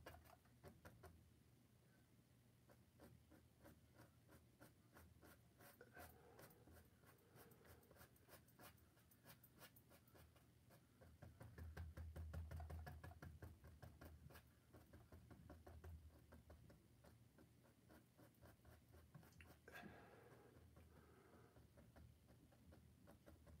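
A brush taps and dabs lightly on canvas.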